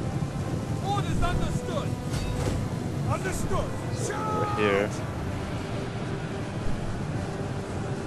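Soldiers clash in a large battle with a steady roaring din.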